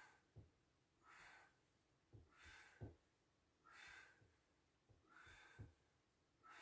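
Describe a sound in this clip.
A man breathes out hard in rhythmic puffs.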